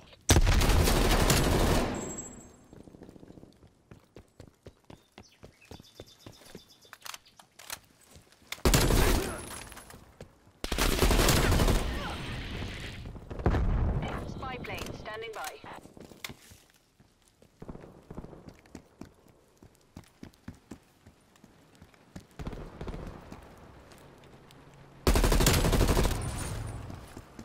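A rifle fires loud bursts of shots.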